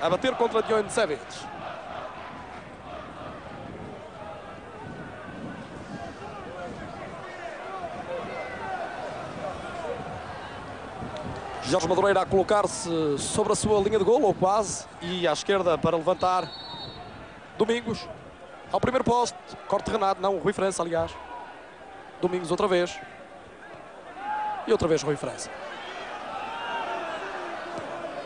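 A stadium crowd murmurs and cheers steadily in the distance.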